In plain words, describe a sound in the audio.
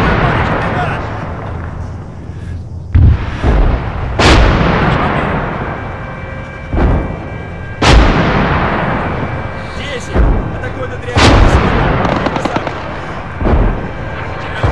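Explosions boom in the distance and rumble away.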